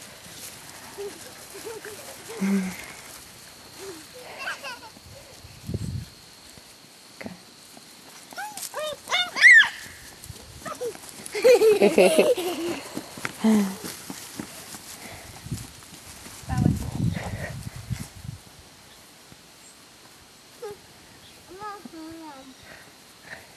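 Puppies whimper and yelp close by.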